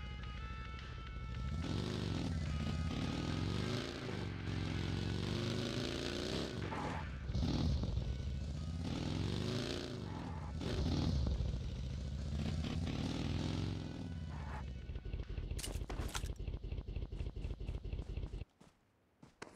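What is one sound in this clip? A buggy engine roars and revs up and down.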